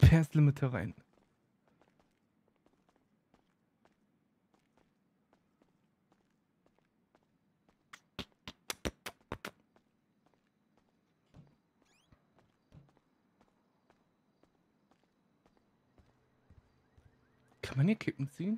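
Footsteps tap softly on a hard floor.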